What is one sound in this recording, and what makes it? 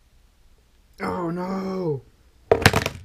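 A young man groans loudly in frustration, close by.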